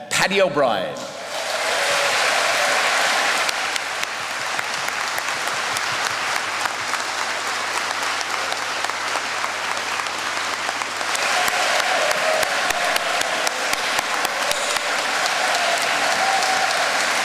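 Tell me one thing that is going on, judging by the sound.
A large audience applauds in an echoing hall.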